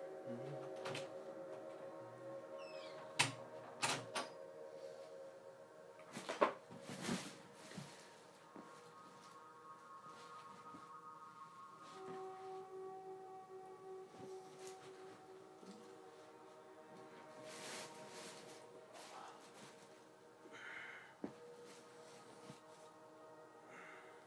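Game music with sustained tones plays from a television.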